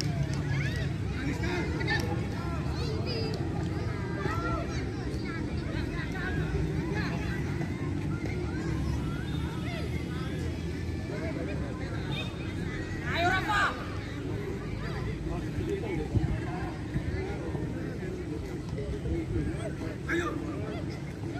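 Young players shout and call to each other in the distance outdoors.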